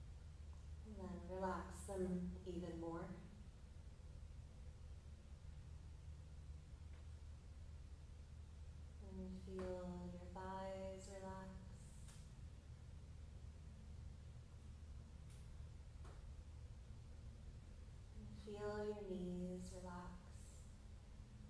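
A woman speaks calmly and softly, close by, with long pauses.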